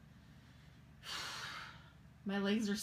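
A person exhales loudly.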